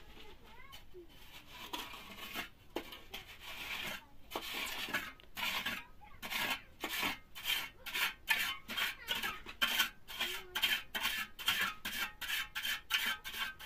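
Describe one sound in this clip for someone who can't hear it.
A trowel scrapes plaster along a wall in quick, regular strokes.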